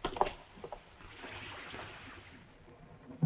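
A waterfall rushes in the distance.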